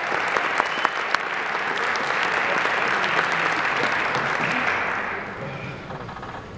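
An audience applauds in a large hall, then the clapping dies down.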